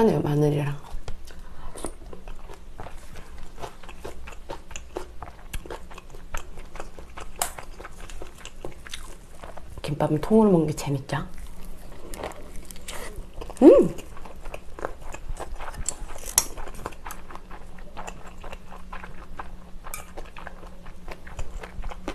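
A young woman chews and crunches food close to a microphone.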